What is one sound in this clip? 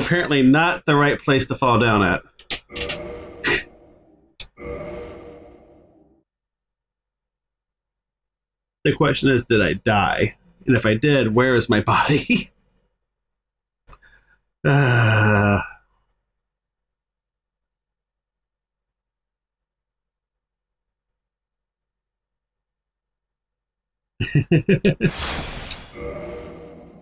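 A middle-aged man talks with animation into a close microphone.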